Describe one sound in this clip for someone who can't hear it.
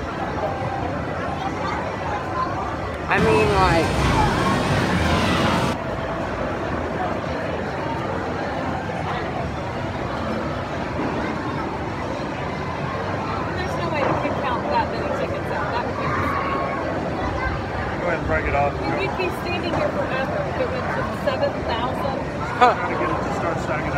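Electronic arcade game music and jingles play in a noisy room.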